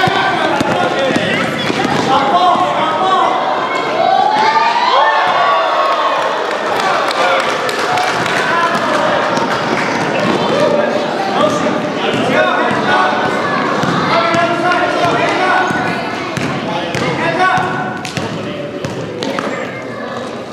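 Sneakers squeak and patter on a gym floor.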